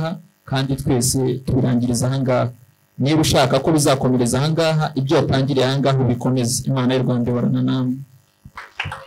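A young man speaks expressively into a microphone.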